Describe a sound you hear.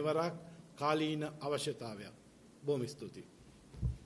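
A middle-aged man speaks calmly into microphones.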